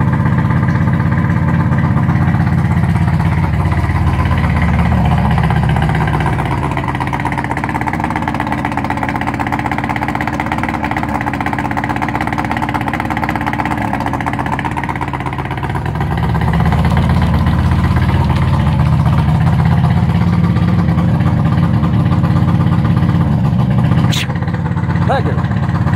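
An outboard motor runs with a steady, throbbing rumble that eases off for a while and then picks up again.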